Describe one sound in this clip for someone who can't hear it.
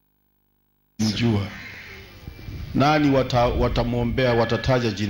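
An elderly man speaks loudly into a microphone, heard through loudspeakers.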